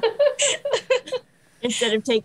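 A woman laughs through an online call.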